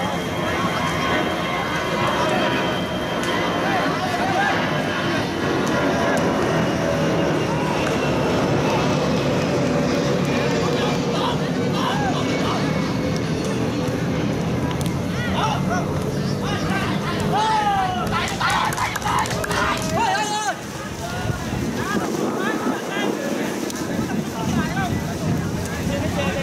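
A crowd of spectators murmurs and cheers outdoors.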